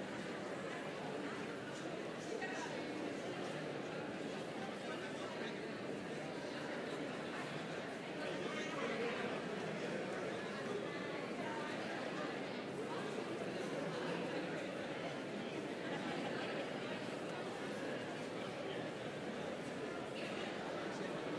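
A choir of men and women sings together in a large echoing hall.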